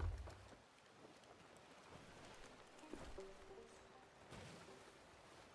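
Ocean waves wash and roll steadily outdoors.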